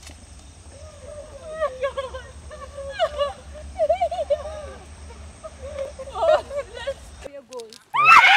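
A young woman talks and laughs into a microphone, close by.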